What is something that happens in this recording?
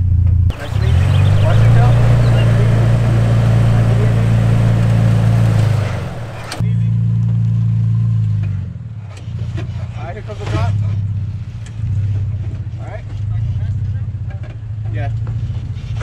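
A truck engine rumbles and revs at low speed.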